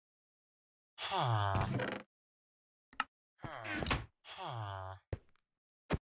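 A villager grunts and mumbles in short nasal murmurs.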